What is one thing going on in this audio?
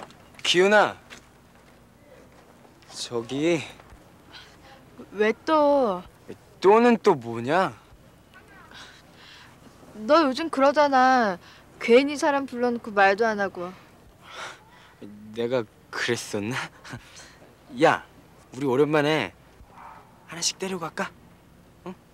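A young woman speaks softly at close range.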